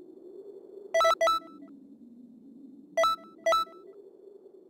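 Short bright electronic chimes ring out a few times.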